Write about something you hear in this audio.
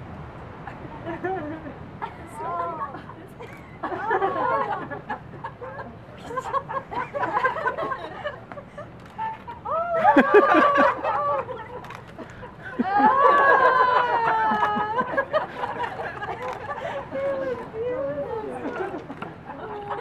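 Young boys speak aloud in turn, heard from a short distance.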